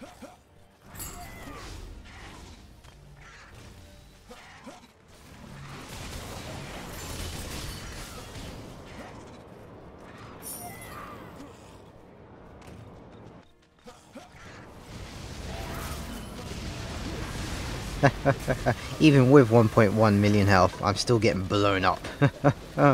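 Magic blasts crackle and boom in quick bursts.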